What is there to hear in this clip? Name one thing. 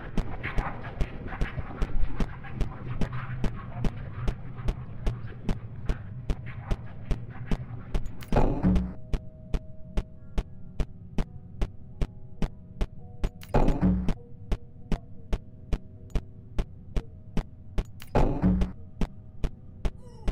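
Footsteps thud on a floor at a walking pace.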